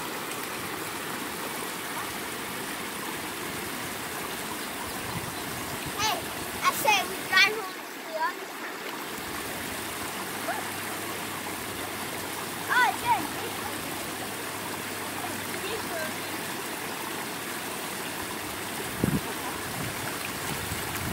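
Boots splash through shallow water.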